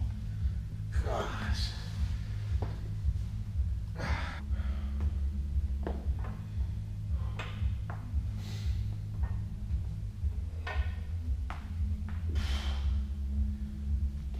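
A man breathes heavily with effort.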